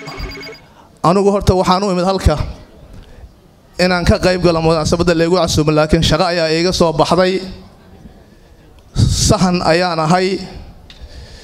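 A man speaks loudly and forcefully into a microphone over a loudspeaker.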